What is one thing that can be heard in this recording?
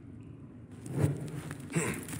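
Torch flames crackle softly.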